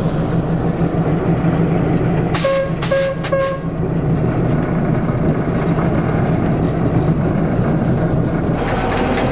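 A railway carriage rolls slowly along the track with a low rumble.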